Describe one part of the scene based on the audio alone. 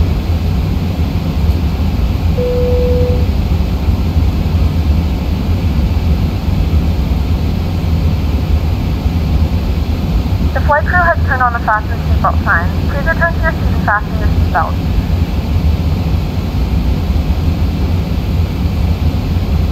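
Aircraft engines roar steadily in a low, even drone.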